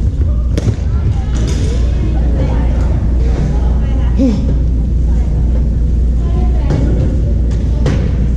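Sneakers squeak on a wooden court floor.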